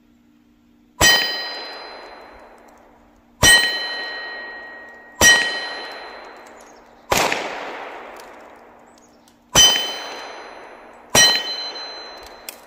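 A steel target clangs and rings with each bullet hit, the ringing slowly fading.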